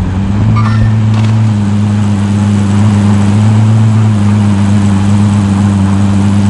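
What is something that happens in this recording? A vehicle engine hums steadily as it drives along a road.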